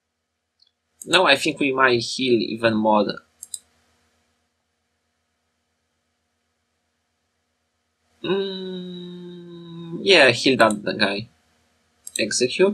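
A young woman talks casually into a nearby microphone, in short bursts with pauses.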